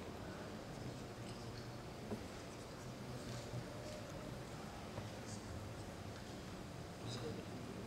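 A man murmurs quietly to a woman beside him.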